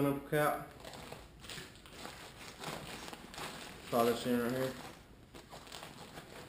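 Zippers and straps rustle on a bag.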